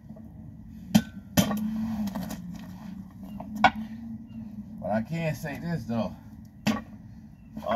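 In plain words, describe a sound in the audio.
Metal weight plates clank and knock together.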